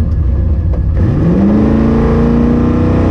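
A car engine revs up sharply and roars as the car launches.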